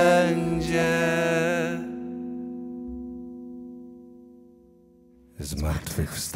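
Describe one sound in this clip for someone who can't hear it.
An acoustic guitar rings out and slowly fades.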